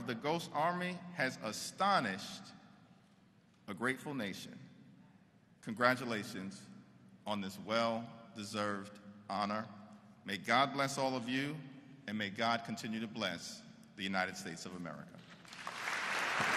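A man speaks steadily into a microphone in a large echoing hall.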